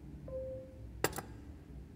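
A metal bell pull clicks sharply as a handle is pulled down.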